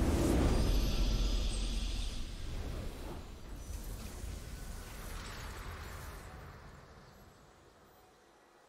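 A triumphant music fanfare swells and slowly fades.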